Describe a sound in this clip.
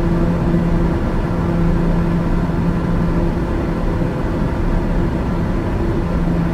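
An aircraft engine drones steadily with a low hum and rushing air.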